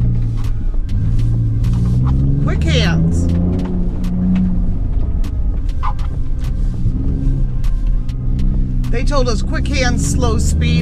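Stones and gravel knock under the tyres.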